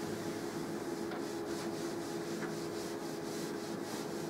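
A cloth eraser rubs across a chalkboard in quick strokes.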